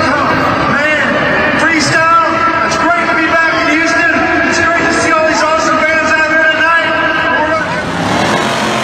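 A man talks into a microphone, heard over loudspeakers in a large echoing arena.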